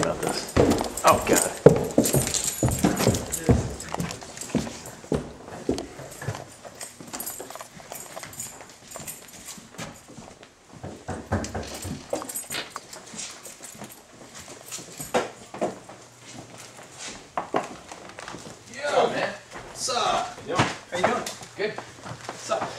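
Footsteps walk along a hard floor indoors.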